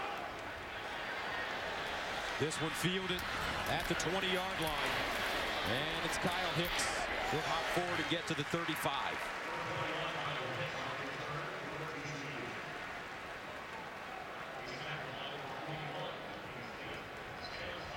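A large stadium crowd roars and cheers, swelling during the play.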